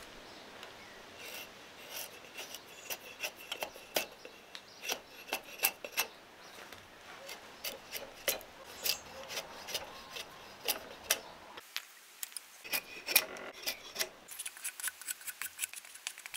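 A drawknife shaves curls of wood.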